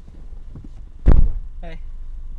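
A car door shuts with a heavy thud.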